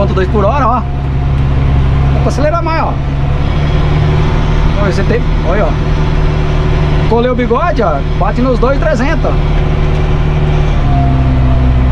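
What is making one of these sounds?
A tractor engine drones steadily from inside the cab.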